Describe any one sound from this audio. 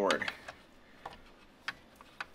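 A metal probe clicks against a circuit board.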